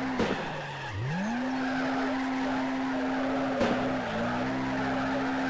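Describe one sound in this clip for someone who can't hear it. Tyres screech as a car drifts sideways.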